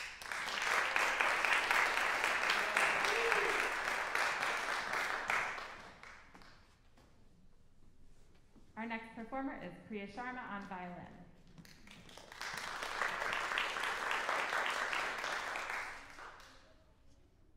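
An audience applauds in an echoing hall.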